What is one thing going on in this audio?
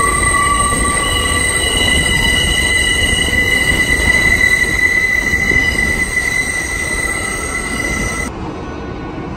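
A train's wheels squeal loudly on an elevated steel track overhead.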